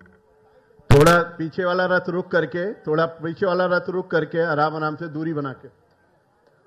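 A man speaks loudly over a loudspeaker.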